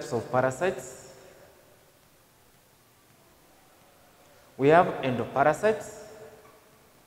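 A man speaks calmly and clearly, as if teaching.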